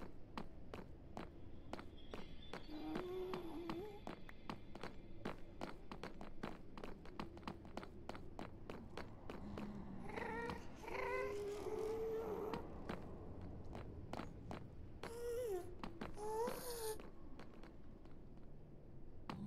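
Footsteps tap quickly and steadily on hard stone.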